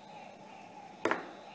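A small plastic toy clicks against a hard surface.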